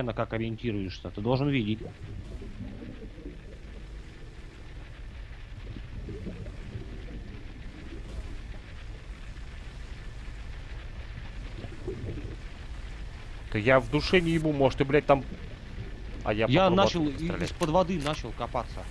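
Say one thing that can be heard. A low underwater rumble drones steadily.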